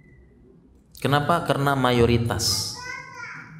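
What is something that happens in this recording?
A man speaks calmly into a microphone, in a slightly echoing room.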